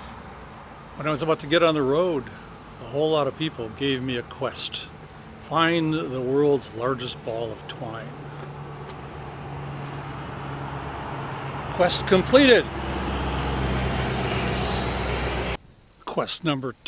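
An older man talks calmly close to a microphone.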